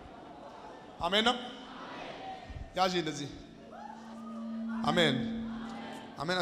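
A man speaks into a microphone, heard through loudspeakers in a large hall.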